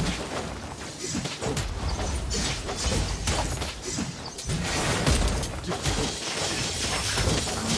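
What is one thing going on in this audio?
Game characters clash with bursts of magic blasts and hits.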